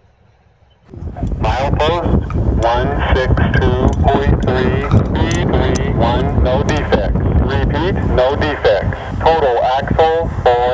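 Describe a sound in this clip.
A handheld radio scanner blares loudly through its small speaker.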